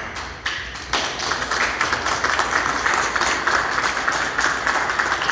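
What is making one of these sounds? A small group of people applauds.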